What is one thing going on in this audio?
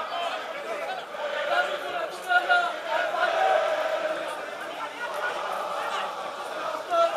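A large stadium crowd chants and sings loudly in an open space.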